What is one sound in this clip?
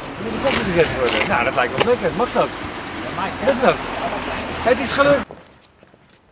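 A man laughs loudly outdoors.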